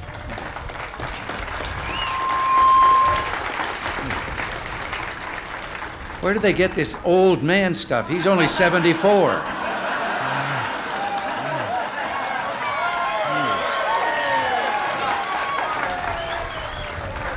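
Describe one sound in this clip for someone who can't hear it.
A crowd cheers and chatters.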